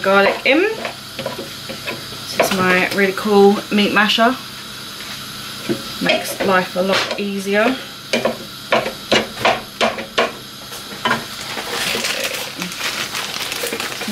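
A masher presses and taps minced meat in a frying pan.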